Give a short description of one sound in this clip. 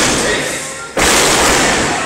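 A wrestler slams onto a ring mat with a loud thud.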